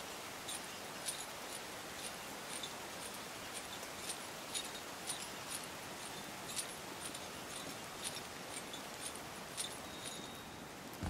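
Metal chain links clink rhythmically as a climber pulls up a chain.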